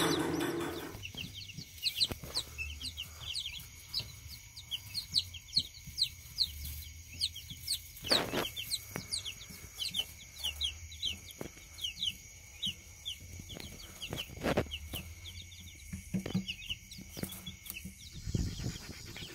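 Chicks peep loudly and rapidly.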